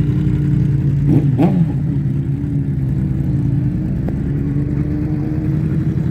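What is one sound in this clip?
A motorcycle rides off and fades into the distance.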